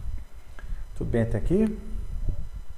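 A man speaks briefly and quietly through a microphone.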